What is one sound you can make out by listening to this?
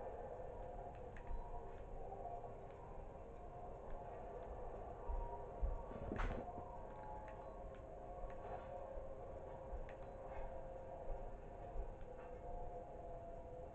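Low, eerie droning music plays through a television speaker.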